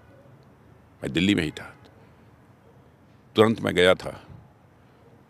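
An elderly man speaks calmly into a microphone, in short bursts.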